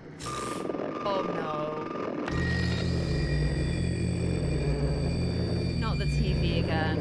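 A young woman speaks softly into a close microphone.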